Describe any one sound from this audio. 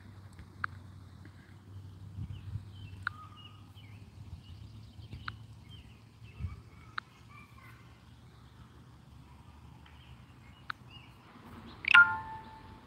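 Wind blows softly through the trees outdoors.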